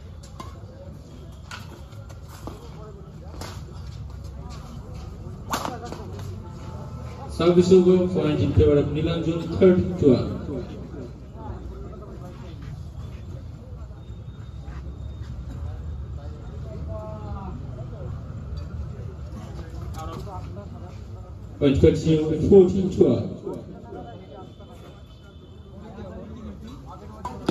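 A crowd of spectators murmurs steadily outdoors.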